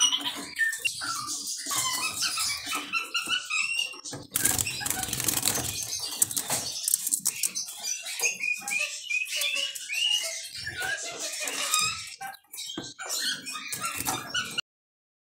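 A small songbird sings a fast, twittering song close by.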